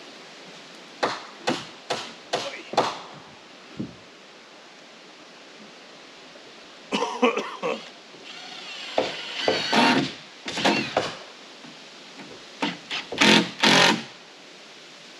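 A hammer knocks on wood framing a short distance away.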